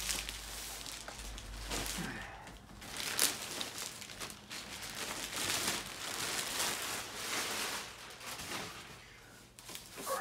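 Plastic wrap crinkles and rustles as it is pulled off.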